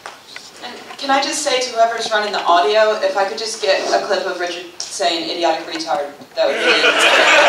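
A woman speaks through a loudspeaker in a large echoing hall.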